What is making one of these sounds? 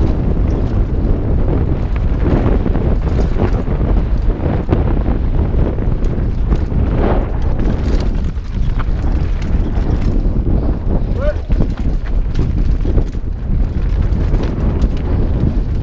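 A mountain bike's frame and chain clatter over bumps.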